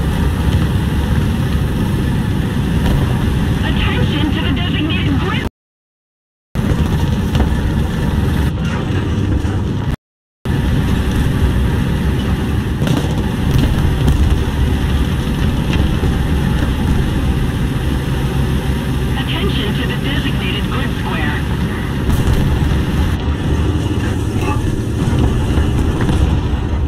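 A tracked armoured vehicle's engine rumbles deeply as it drives.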